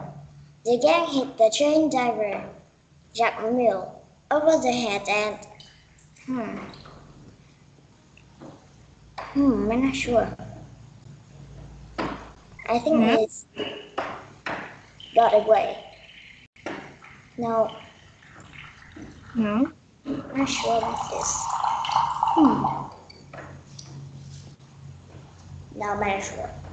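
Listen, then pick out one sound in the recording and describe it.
A young woman speaks calmly through an online call.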